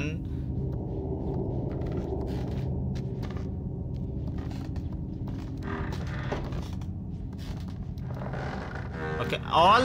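Small footsteps patter on a wooden floor.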